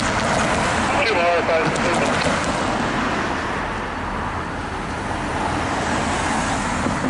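Cars approach on the road with a steady rush of engine and tyre noise.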